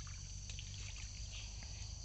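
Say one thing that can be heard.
Water splashes as a hand slaps into a shallow stream.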